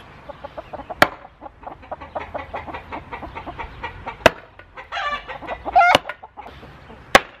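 A metal post driver bangs loudly on a wooden post.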